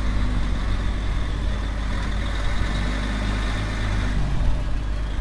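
A hydraulic crane whines as it lifts.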